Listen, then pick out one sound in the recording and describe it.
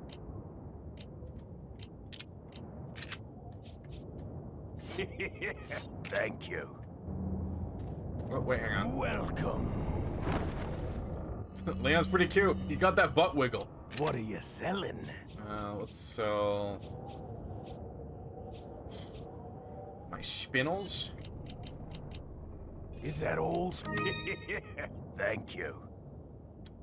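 Game menu clicks and chimes sound as items are chosen.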